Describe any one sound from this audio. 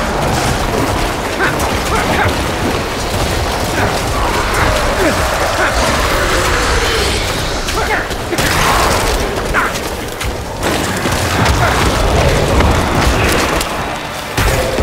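Spells crackle and whoosh in a constant barrage of combat.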